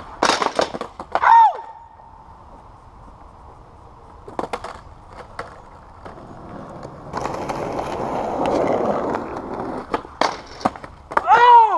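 A skateboard clacks and knocks against the ground.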